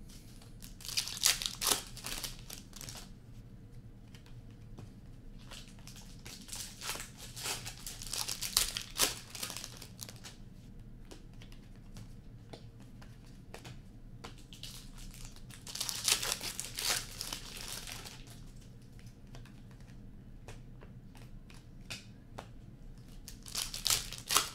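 Plastic card wrappers crinkle and rustle.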